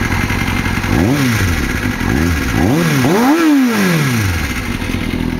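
A motorcycle engine revs up sharply several times and drops back.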